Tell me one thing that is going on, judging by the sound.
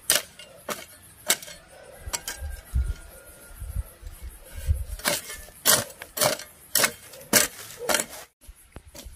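A hoe chops into dry soil with sharp thuds.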